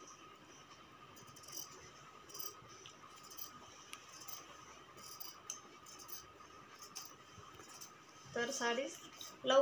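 Scissors snip through cloth with short, soft crunches.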